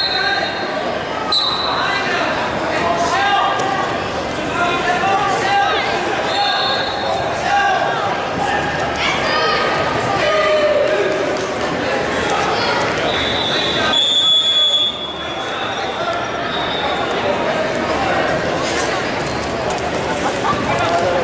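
Shoes squeak on a wrestling mat.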